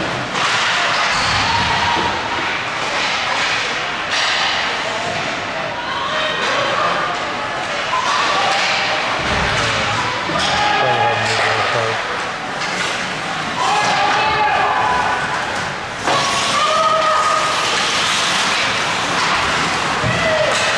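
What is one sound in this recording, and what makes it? A crowd of people talks and shouts around the rink.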